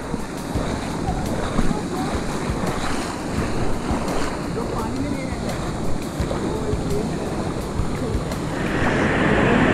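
A small waterfall rushes and splashes over rocks.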